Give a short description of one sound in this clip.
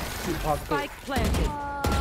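A rifle fires a burst of gunshots.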